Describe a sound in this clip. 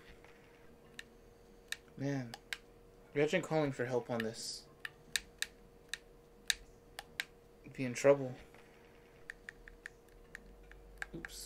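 A rotary phone dial clicks as it turns and spins back.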